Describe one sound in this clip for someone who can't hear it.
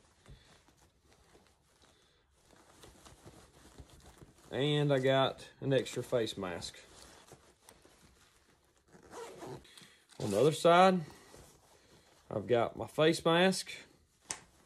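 Fabric rustles as a man handles a pouch.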